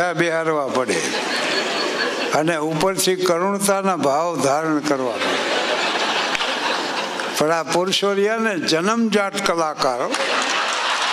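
An elderly man sings with a wavering voice through a microphone.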